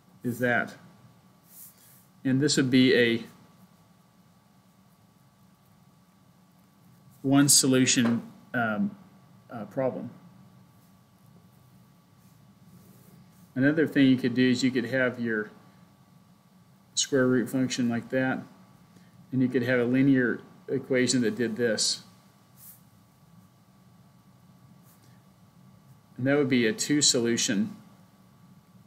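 A man speaks calmly in short phrases with long pauses.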